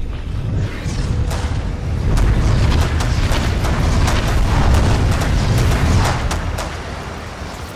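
A large creature's heavy footsteps thud and scrape over stone.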